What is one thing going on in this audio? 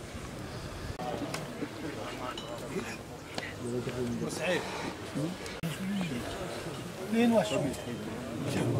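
Men talk quietly close by.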